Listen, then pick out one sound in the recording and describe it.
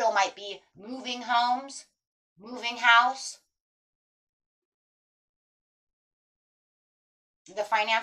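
A woman speaks calmly and close by, with pauses.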